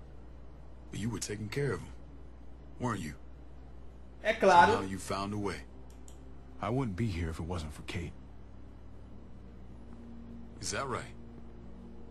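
Men speak calmly in short lines, close by.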